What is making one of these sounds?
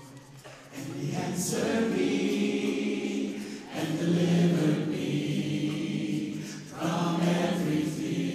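A woman sings along into a microphone.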